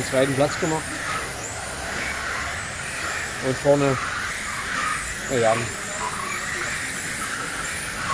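Small electric model cars whine at high pitch as they race past.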